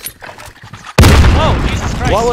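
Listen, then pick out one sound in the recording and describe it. A loud explosion booms close by.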